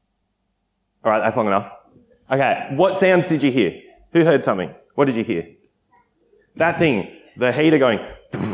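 A man speaks calmly and with animation through a microphone.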